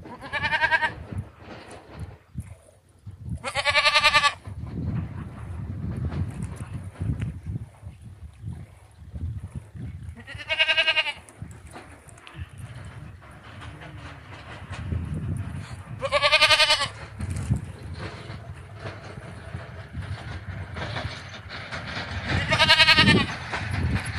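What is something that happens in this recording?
A goat bleats loudly several times.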